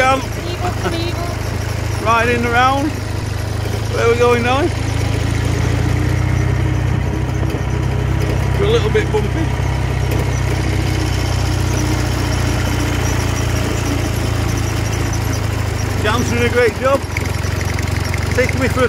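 A motorcycle engine runs while riding.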